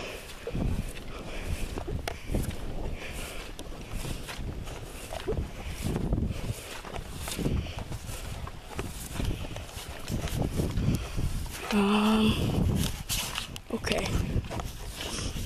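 Footsteps swish through wet grass.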